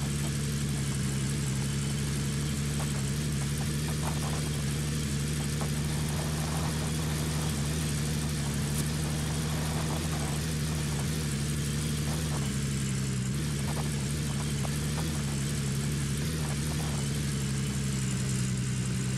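A pickup truck engine drones steadily as it drives.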